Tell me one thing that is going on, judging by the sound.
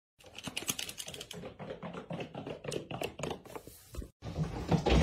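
A kitten's paws patter on a hard floor.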